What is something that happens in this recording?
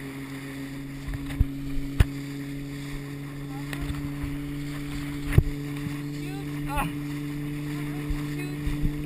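Water splashes and rushes as a rider is towed behind a boat.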